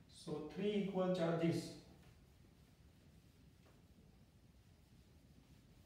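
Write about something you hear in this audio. A cloth rubs softly across a whiteboard.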